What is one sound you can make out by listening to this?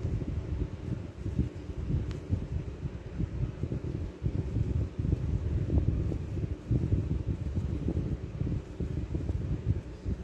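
Yarn rustles and rubs softly as it is pulled through fabric close by.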